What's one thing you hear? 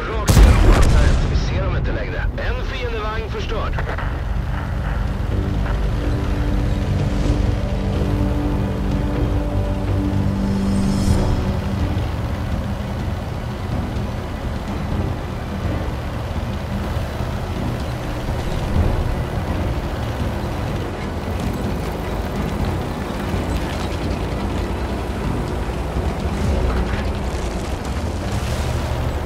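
A tank's tracks clank and grind over dirt.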